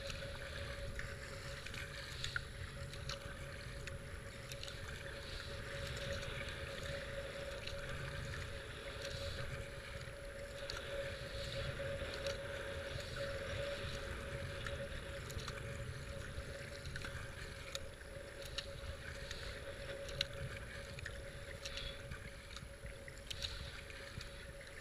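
Fast river water rushes and churns around a boat.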